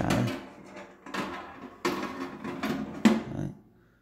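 A metal oven rack slides and rattles against its rails.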